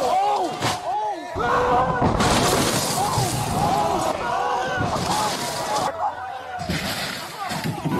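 A crowd cheers and shouts excitedly outdoors.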